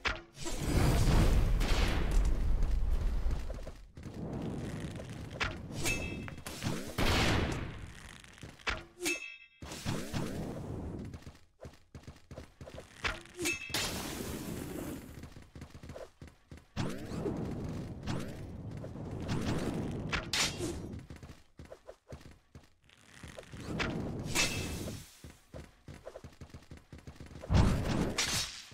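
Game gunfire pops and crackles.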